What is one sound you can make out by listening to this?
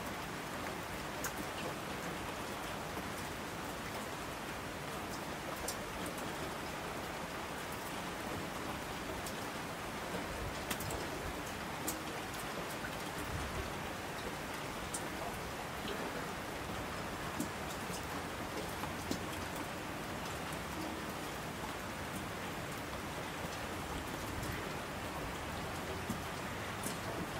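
Rushing streams roar down the slopes.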